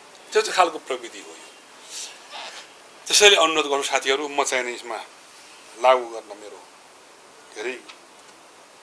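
A middle-aged man speaks calmly and haltingly, close by.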